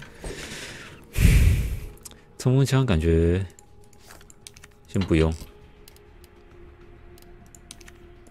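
Soft menu clicks tick as a selection moves through a list.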